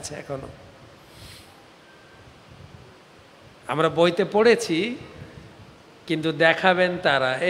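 A man speaks with animation into a microphone, with pauses between phrases.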